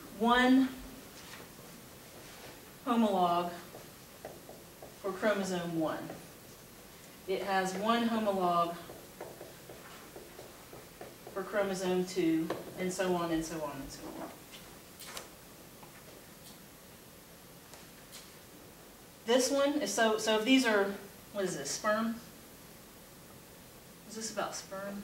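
A woman lectures calmly in short bursts with pauses.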